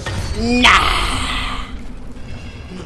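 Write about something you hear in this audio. A creature snarls close by.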